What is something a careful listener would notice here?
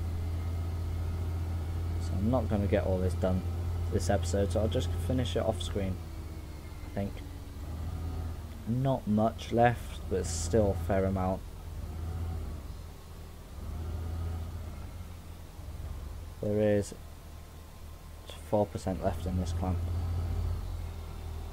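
A loader's diesel engine rumbles steadily at idle.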